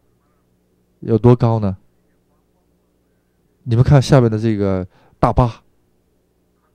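A man speaks calmly in short phrases.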